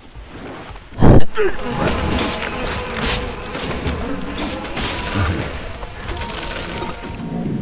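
Spell effects and weapon strikes clash in a fight.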